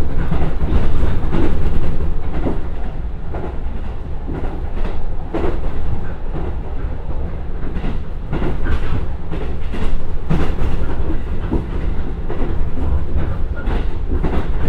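A diesel train engine rumbles steadily.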